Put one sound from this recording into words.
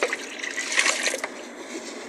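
Water pours from a bottle into a bucket.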